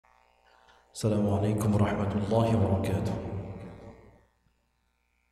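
A man chants a long melodic recitation through a microphone, his voice echoing in a large hall.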